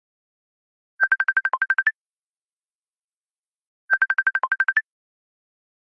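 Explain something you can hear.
A phone ringtone plays in quick bursts of high beeps.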